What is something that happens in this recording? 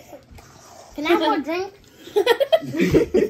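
A young boy laughs loudly.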